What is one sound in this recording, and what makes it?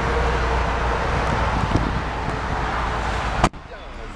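A car trunk lid slams shut.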